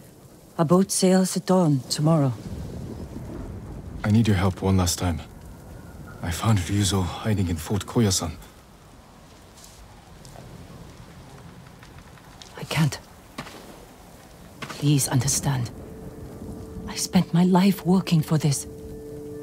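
A young woman speaks quietly and earnestly, close by.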